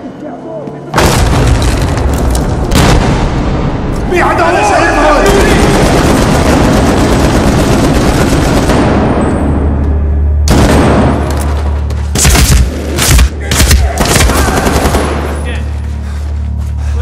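Rifles fire in rapid bursts, loud and close.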